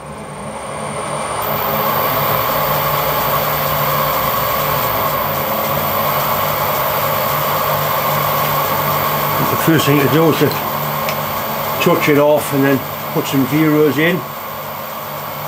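A milling machine hums and whirs steadily.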